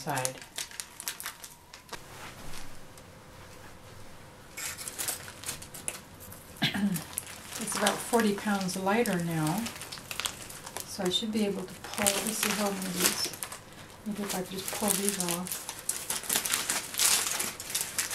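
Foil crinkles and rustles under hands.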